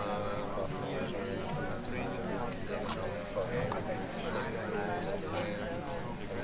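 A crowd of young men and women chatters close by.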